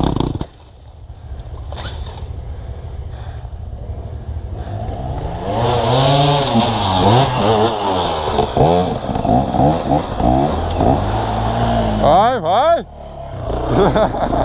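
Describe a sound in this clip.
Dirt bikes rev hard as they climb a steep dirt slope nearby.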